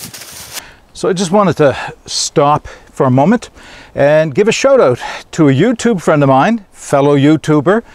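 An older man talks calmly and close into a clip-on microphone.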